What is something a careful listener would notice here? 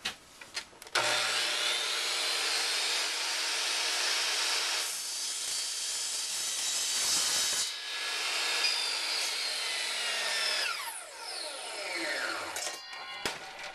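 A miter saw motor whines loudly, then winds down.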